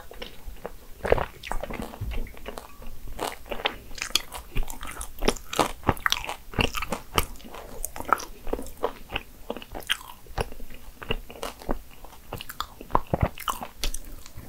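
A young woman chews soft cake wetly and smacks her lips close to a microphone.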